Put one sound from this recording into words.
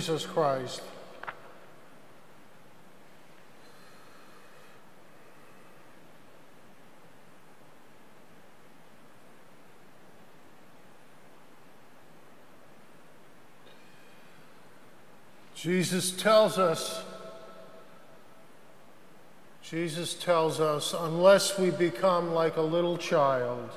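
A middle-aged man speaks calmly through a microphone in a reverberant hall.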